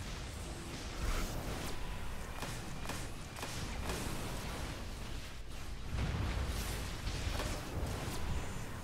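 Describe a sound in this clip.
Electric blasts crackle and zap in rapid bursts.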